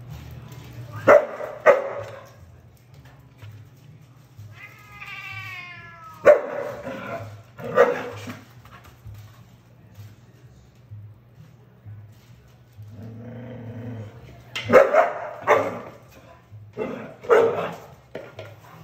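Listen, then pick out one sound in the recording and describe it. A cat yowls and hisses loudly in short bursts.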